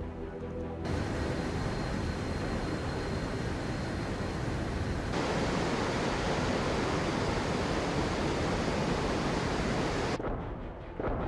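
Water splashes and rushes past a large ship's hull.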